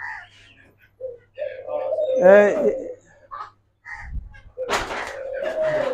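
Doves coo softly nearby.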